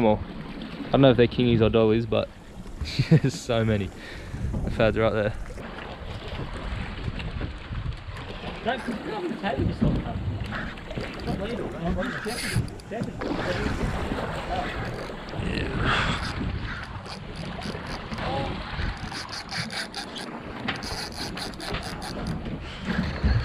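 Water splashes against a boat hull.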